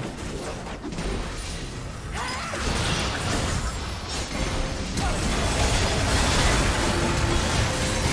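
Video game spell effects whoosh and crackle during a busy battle.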